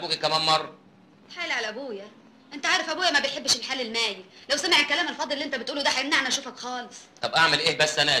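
A young woman speaks earnestly and close by.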